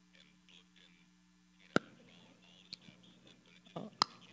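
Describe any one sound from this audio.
A woman crunches chalk between her teeth.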